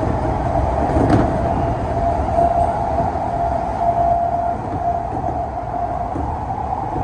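A train's motor whines with a steady tone.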